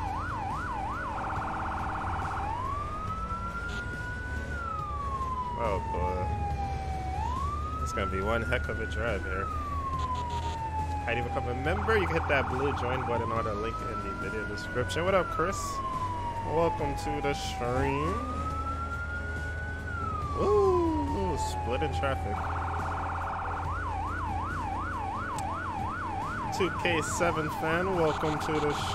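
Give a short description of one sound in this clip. A siren wails, switching between a rising and falling wail and a fast yelp.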